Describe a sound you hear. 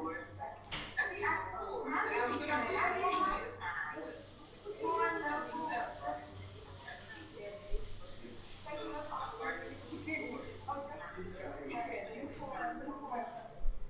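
A woman speaks calmly to a room, heard through an online call.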